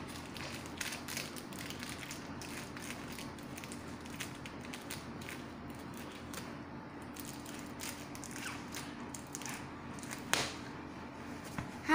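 A boy's hands rub and tap on a fabric sofa.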